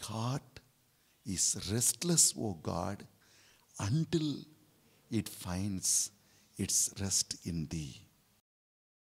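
A middle-aged man speaks with animation into a microphone, in a small echoing room.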